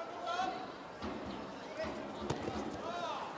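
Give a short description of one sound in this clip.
Bodies thud onto a mat during a throw attempt.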